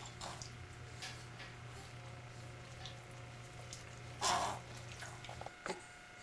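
Water splashes softly as a baby is washed with a cloth.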